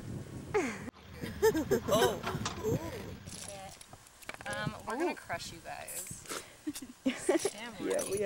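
Young women talk with animation close by.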